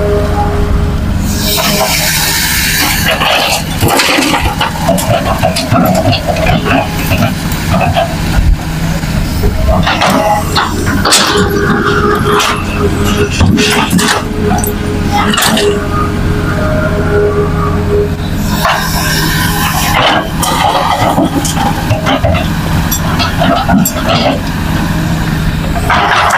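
A diesel hydraulic excavator engine runs under load.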